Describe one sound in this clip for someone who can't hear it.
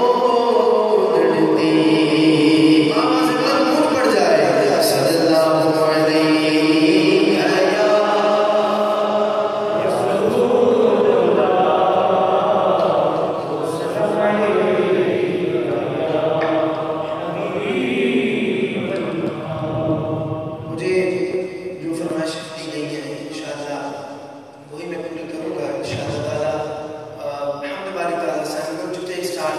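A man sings a devotional chant into a microphone, heard through loudspeakers in a reverberant hall.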